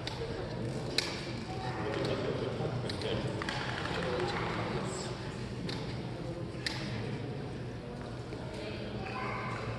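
Shuttlecocks are struck with rackets, with sharp pops echoing in a large hall.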